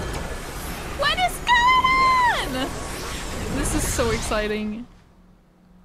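A young woman talks and exclaims in a rising, sing-song voice close to a microphone.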